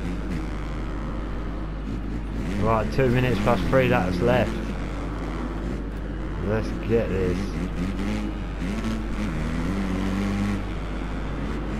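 A motocross bike engine revs up and down, rising and falling sharply in pitch.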